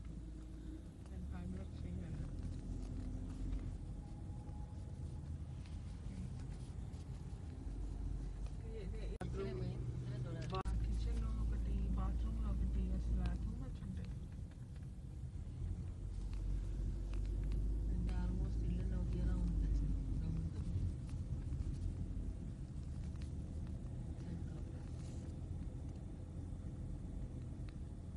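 A car engine hums low and steady from inside the car as it drives slowly along.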